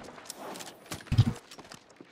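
A heavy gun fires with a deep boom.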